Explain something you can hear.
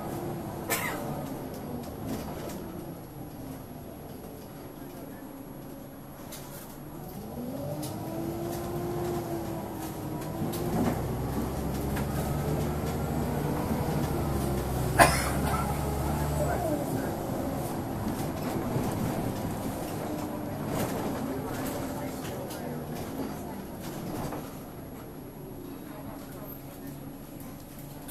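A bus engine hums and rises and falls in pitch as the bus moves off and slows.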